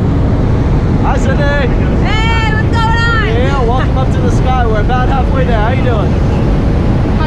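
A young woman talks and laughs excitedly close by.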